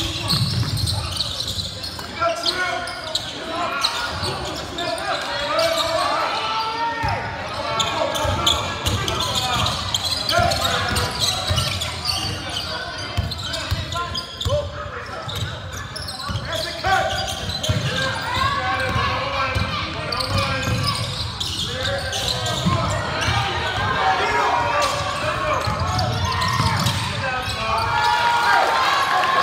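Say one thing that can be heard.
A basketball bounces repeatedly.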